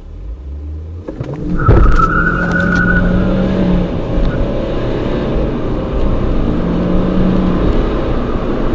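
A car engine revs hard and roars as the car accelerates.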